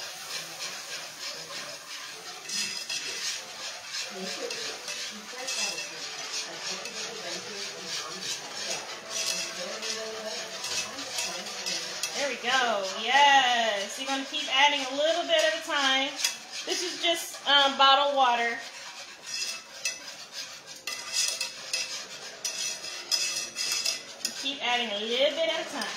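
A spoon scrapes against a pan while stirring.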